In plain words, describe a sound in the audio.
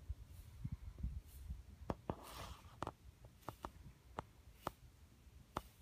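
A horse's hooves shift and thud softly on the floor.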